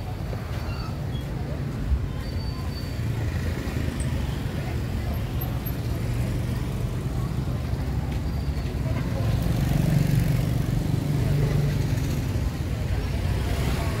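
Street traffic rumbles and motorbike engines hum nearby, outdoors.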